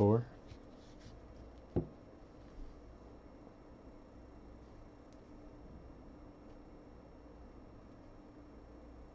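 Trading cards shuffle and rustle between a person's hands.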